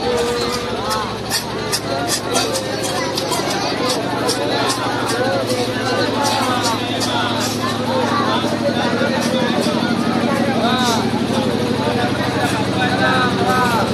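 A large crowd chatters and shouts loudly outdoors.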